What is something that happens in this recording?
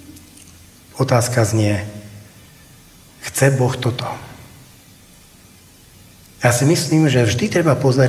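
A middle-aged man speaks into a microphone in short bursts with pauses, heard through a loudspeaker.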